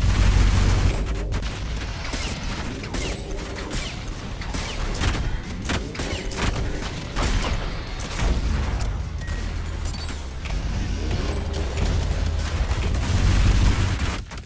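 A shotgun fires in bursts.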